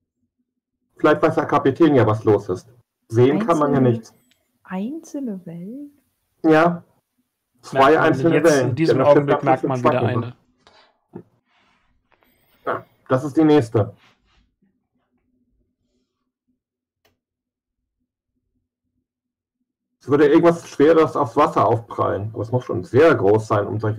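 A man speaks with animation over a microphone, heard as in an online call.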